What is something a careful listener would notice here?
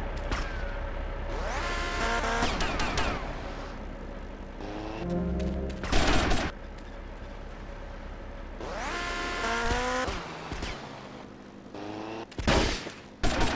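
A motorbike engine revs up and down as it rides.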